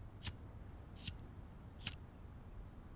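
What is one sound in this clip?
A lighter clicks.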